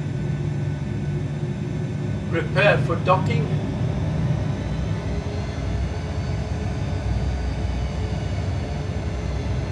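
A jet engine hums with a low, steady rumble.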